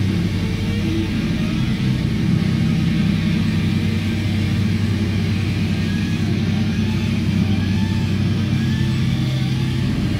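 A rock band plays loudly with heavy distorted guitars.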